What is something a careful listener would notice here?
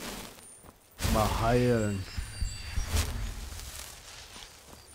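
A magic spell crackles and whooshes loudly.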